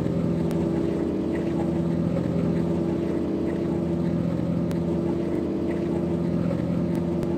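A bus engine hums steadily at high speed.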